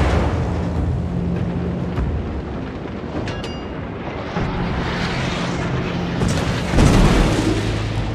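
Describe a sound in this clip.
Shells splash heavily into the sea nearby.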